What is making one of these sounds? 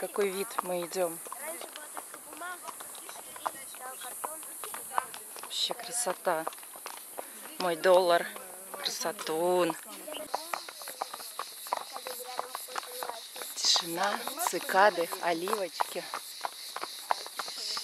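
Horse hooves clop steadily on a paved road.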